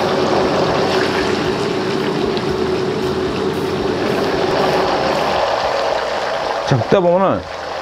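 Oil sizzles loudly in a hot pan.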